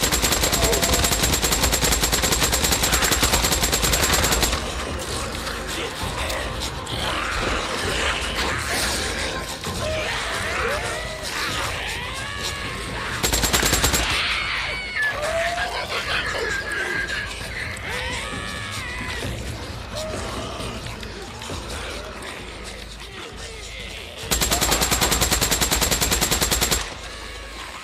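An automatic rifle fires in rapid, loud bursts.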